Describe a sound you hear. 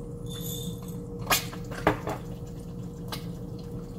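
A pepper mill clinks down onto a hard surface.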